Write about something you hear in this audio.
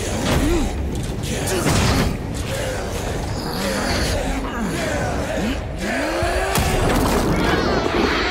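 A chorus of voices chants over and over.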